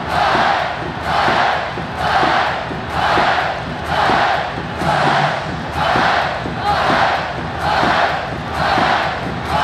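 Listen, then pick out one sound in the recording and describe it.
A large crowd claps in time.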